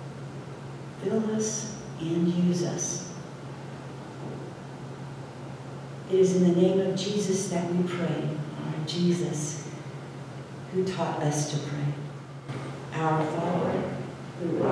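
An elderly woman speaks slowly and calmly through a microphone in an echoing room.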